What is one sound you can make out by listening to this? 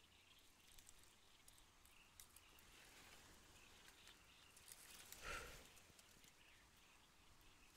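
Pruning shears snip through thin twigs.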